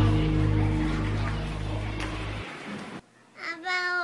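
Children chatter in a noisy crowd.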